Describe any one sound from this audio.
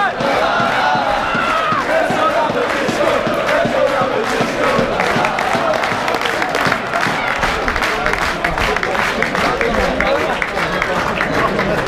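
Nearby men chant and clap along.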